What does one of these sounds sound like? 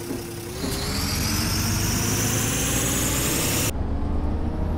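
A bus engine rumbles and rises in pitch as the bus pulls away.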